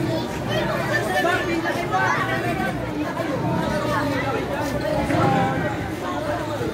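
A crowd of young people chatters and shouts outdoors close by.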